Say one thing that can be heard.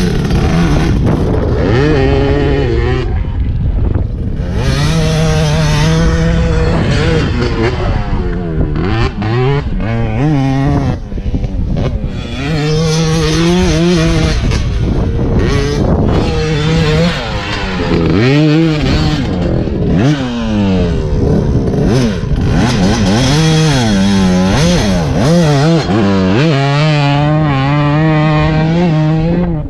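Dirt bike engines rev and roar loudly, rising and falling in pitch.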